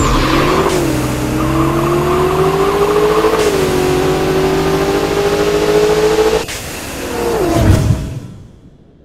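A racing car engine roars at high revs, climbing in pitch through each gear shift.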